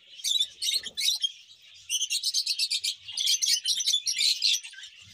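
Many small parrots chirp and chatter rapidly and shrilly close by.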